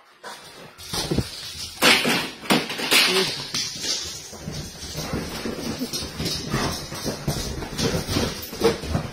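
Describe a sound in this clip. A dog scrambles and thumps about on a leather sofa.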